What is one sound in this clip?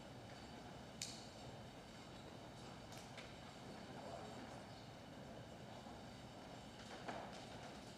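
People shuffle their feet on a carpeted floor.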